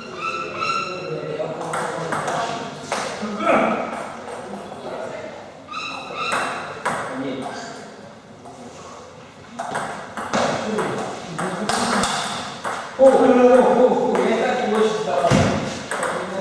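A table tennis ball clicks back and forth between paddles and table.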